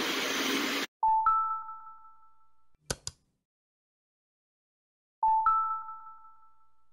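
An electronic message chime sounds twice.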